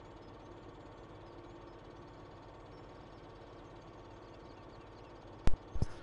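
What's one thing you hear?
A tractor engine idles with a low, steady rumble.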